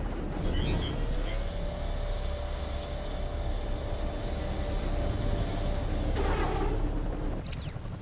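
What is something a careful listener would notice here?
A machine hums steadily as it rises.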